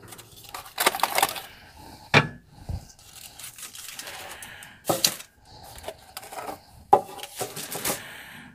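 A metal pan scrapes and knocks on a metal surface.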